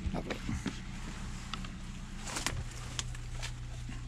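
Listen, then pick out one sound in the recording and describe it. Footsteps rustle and crunch through dry leaves and undergrowth.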